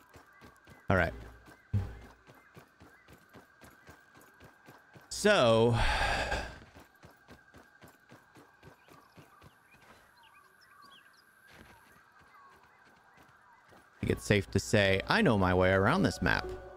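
Soft footsteps patter quickly on soil.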